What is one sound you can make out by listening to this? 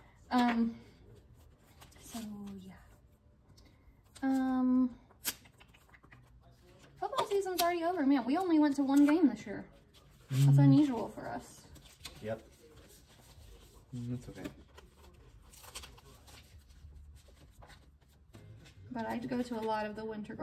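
Paper rustles and crinkles softly under hands.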